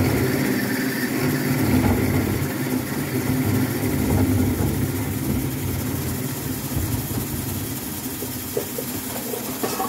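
A cutting tool scrapes against turning metal.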